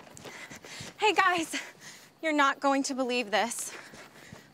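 A young woman speaks loudly and with animation, close by.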